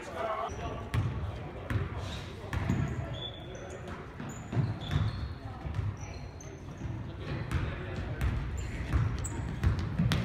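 Sneakers squeak and thump on a hardwood gym floor.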